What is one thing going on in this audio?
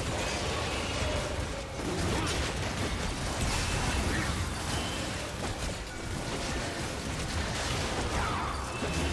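Spell effects whoosh and crackle in a fantasy battle.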